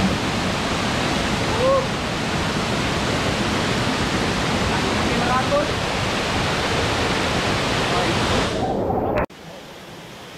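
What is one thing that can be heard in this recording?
Water rushes loudly over rocks and into a pool.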